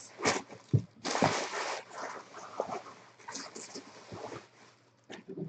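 Plastic wrapping rustles and crinkles as hands handle it.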